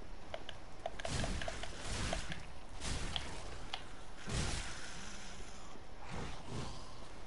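Swords swing and clash in a fight.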